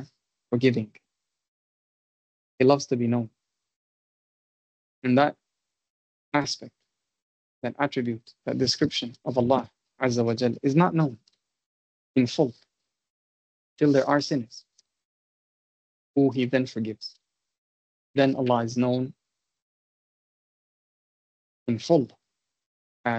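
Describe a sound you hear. A man speaks calmly in short phrases with pauses, heard through an online call.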